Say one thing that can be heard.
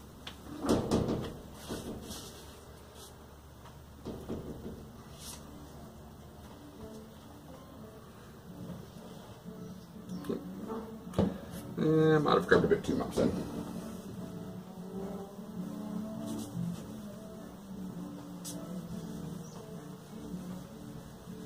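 A cloth rubs against a wooden board.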